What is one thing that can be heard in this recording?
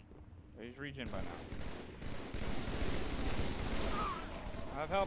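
Gunfire bursts from a game.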